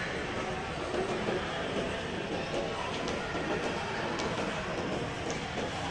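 A shopping cart's wheels rattle across a hard floor.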